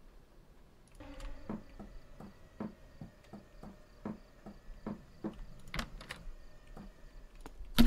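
Footsteps walk steadily on a wooden floor.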